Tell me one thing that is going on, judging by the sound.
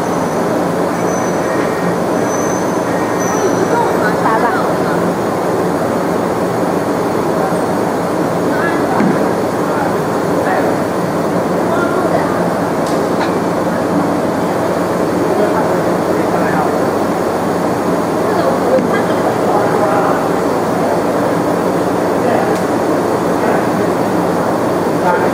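A small motor whirs as a cylinder slowly turns.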